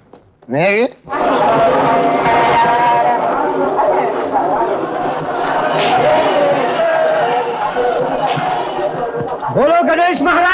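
A large crowd chants loudly outdoors.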